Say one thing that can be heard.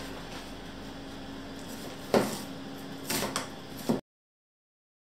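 A knife chops through an onion onto a cutting board.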